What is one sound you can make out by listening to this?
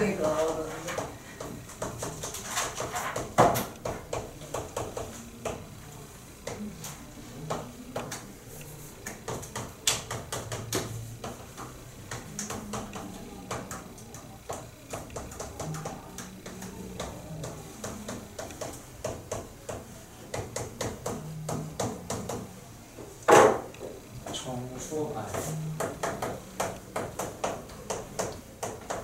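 A young man speaks calmly through a microphone, explaining steadily.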